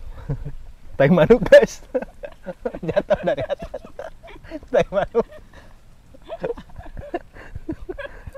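A young man laughs heartily.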